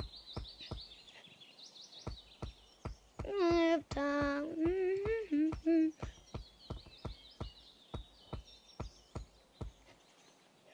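Footsteps thud steadily on wooden planks.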